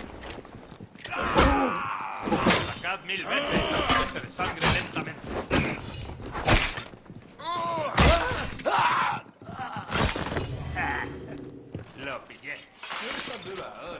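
Men grunt and cry out in pain during a fight.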